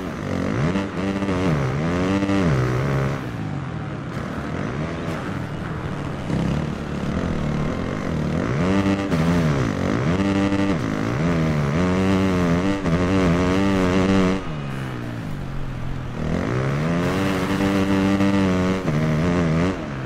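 A motorcycle engine revs up and down as it races, rising and falling in pitch with each gear change.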